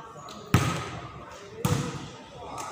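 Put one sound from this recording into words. A volleyball is struck hard with sharp slaps that echo around a large covered court.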